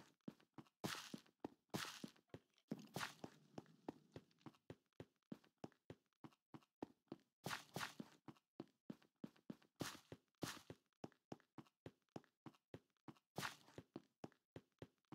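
Footsteps tread quickly and steadily on stone.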